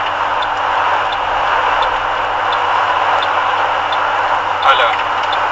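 A car drives steadily along a road at speed, with a loud rushing of road noise and wind.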